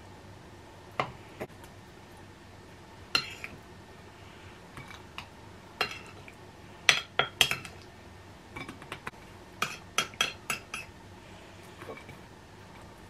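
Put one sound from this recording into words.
Food and utensils tap and clink against a plate.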